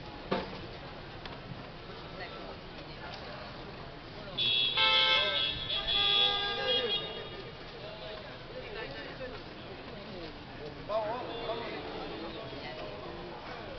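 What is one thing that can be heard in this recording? A crowd of men and women murmurs outdoors.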